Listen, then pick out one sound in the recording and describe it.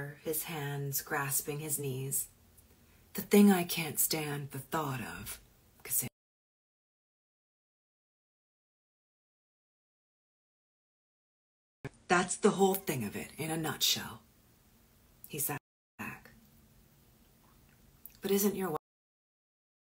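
A woman reads aloud calmly, close to a microphone.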